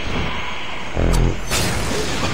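A smoke bomb bursts with a dull thud.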